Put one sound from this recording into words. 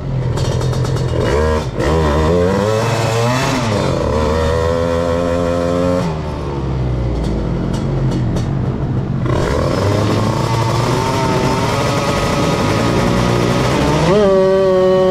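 A motorcycle engine revs up and down sharply while idling close by.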